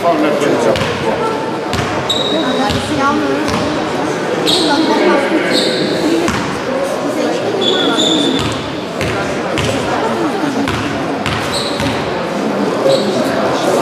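A crowd of spectators chatters in a large echoing hall.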